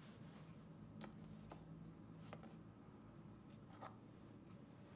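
Small objects click and knock as a person fumbles on a bedside table.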